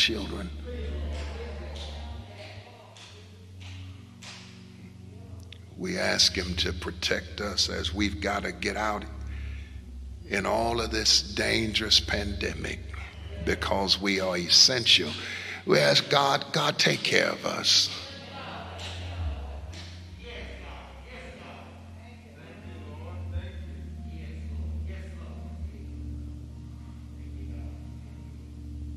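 An elderly man speaks with animation into a microphone, heard through loudspeakers in a large hall.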